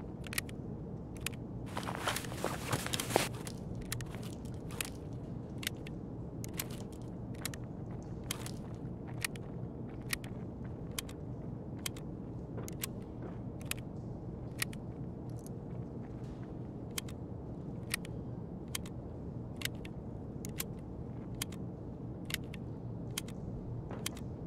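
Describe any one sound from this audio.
Short, sharp clicks sound as items are dropped into place.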